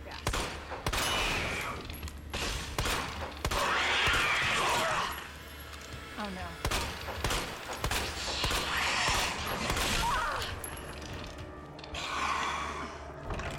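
A monster growls and screeches harshly.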